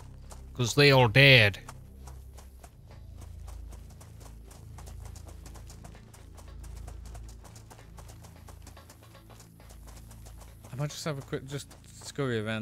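Boots crunch on gravel at a run.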